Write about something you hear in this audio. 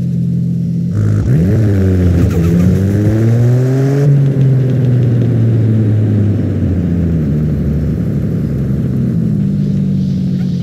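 A car engine revs up again as the car pulls away.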